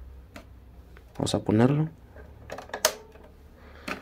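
A tape deck button clicks down.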